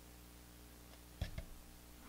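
Thick liquid plaster pours out of a plastic tub.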